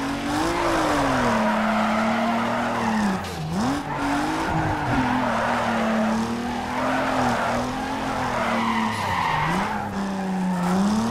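Tyres screech as a car drifts through corners.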